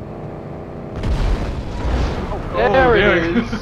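A car explodes with a deep boom.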